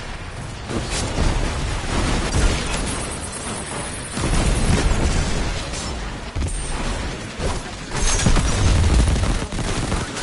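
Explosions boom heavily.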